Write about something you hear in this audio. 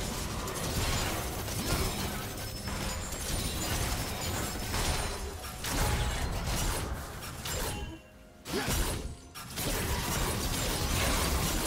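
Video game spell effects whoosh and clash during a fight.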